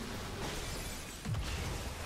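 An explosion bursts with a low rumble.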